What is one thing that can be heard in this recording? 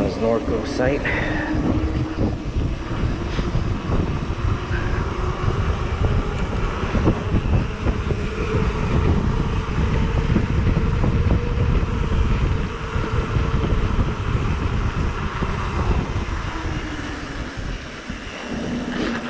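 Wind rushes loudly past the microphone.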